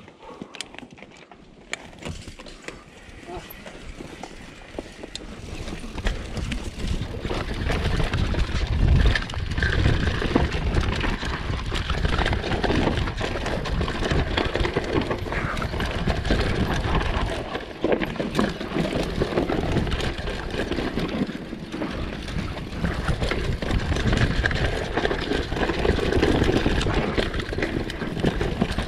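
A bicycle's frame and chain rattle over bumps.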